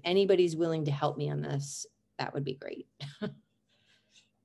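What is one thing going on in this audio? An older woman speaks calmly through a microphone, close by.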